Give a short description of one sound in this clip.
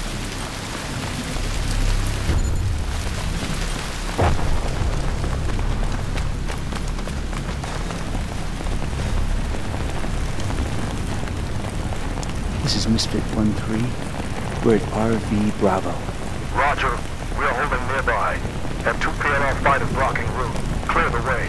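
Rain patters steadily all around.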